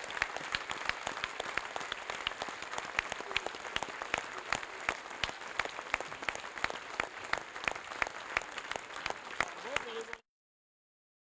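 A crowd applauds with steady clapping.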